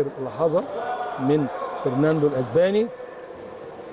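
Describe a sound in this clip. A man talks loudly and with animation close by, in an echoing hall.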